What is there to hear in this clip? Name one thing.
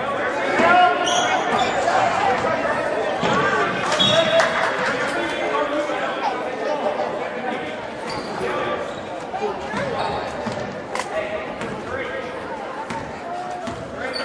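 A crowd talks and shouts in a large echoing gym.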